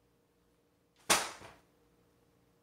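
A booklet lands on the floor with a slap.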